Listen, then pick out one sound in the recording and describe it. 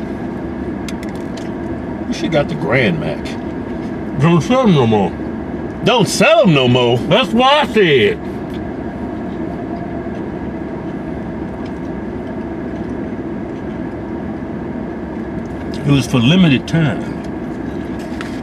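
A car engine idles steadily in the background.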